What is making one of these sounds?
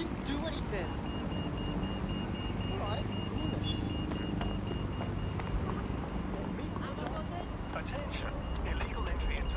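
City traffic rumbles in the distance.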